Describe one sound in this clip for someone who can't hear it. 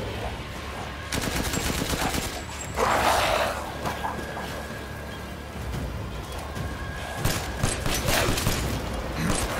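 Gunshots crack sharply, one at a time.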